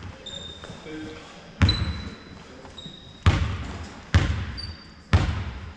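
Sneakers squeak on the court.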